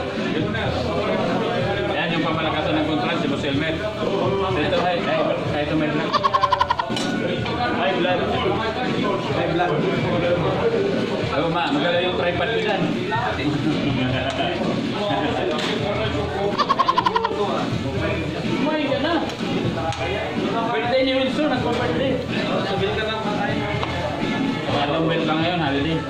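A crowd of men and women chatter loudly in a room that echoes.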